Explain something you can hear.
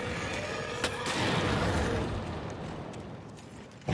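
A fiery blast booms and crackles.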